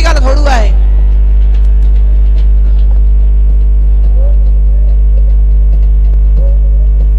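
A crowd of men chatters and calls out nearby.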